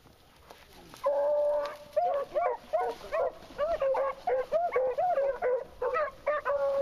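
A dog bays and howls repeatedly nearby.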